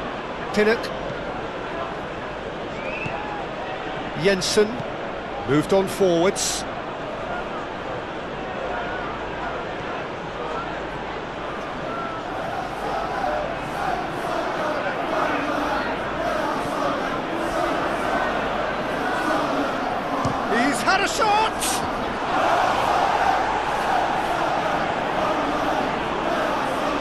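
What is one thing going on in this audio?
A large crowd murmurs and cheers steadily, growing louder toward the end.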